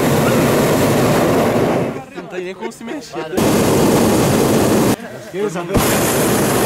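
A hot-air balloon's propane burner roars in bursts.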